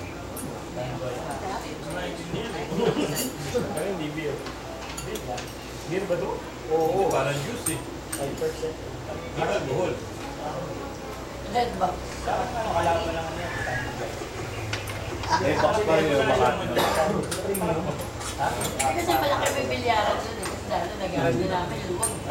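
Several men and women chat and laugh together nearby.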